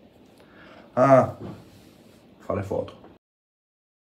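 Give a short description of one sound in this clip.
A young man speaks briefly and close by.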